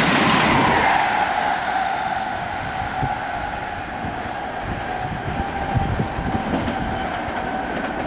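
An electric high-speed train races past and fades away.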